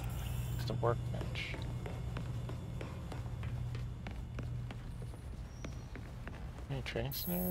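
Footsteps run quickly across a wooden floor.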